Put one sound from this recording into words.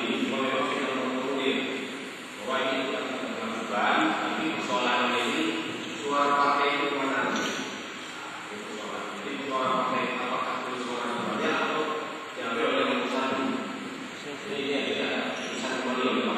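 A man speaks steadily into a microphone, heard through a loudspeaker in an echoing room.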